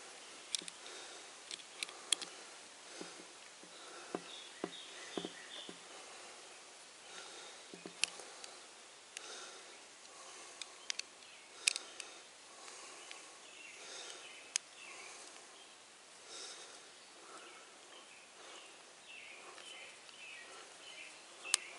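A screwdriver clicks and scrapes against a metal hose fitting.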